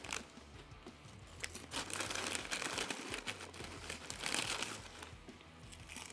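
A young man chews food with his mouth close to a microphone.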